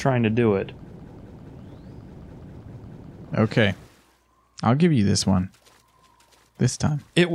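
A man speaks with animation in short bursts.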